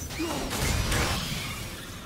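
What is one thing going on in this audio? A glowing axe swings with a whoosh.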